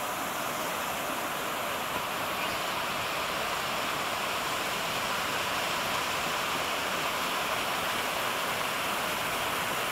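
A stream rushes over rocks, growing louder.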